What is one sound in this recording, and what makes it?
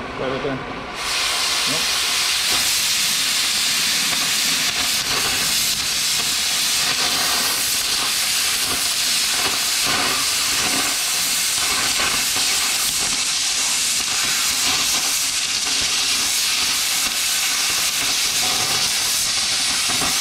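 A cutting torch roars loudly as it cuts through metal.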